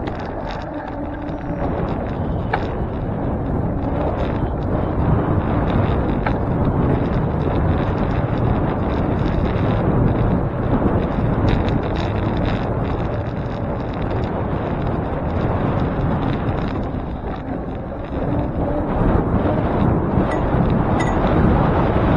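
Traffic rumbles by on a nearby street.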